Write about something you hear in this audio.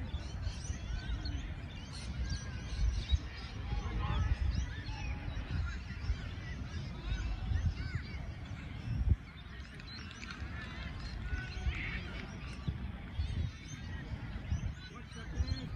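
Children shout and call out in the distance.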